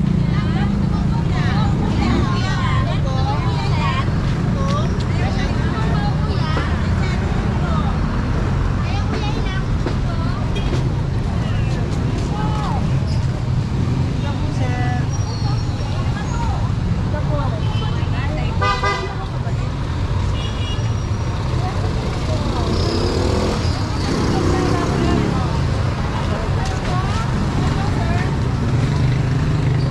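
Men and women chatter nearby, outdoors.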